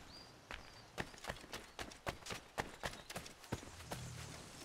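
Footsteps run on a dirt path.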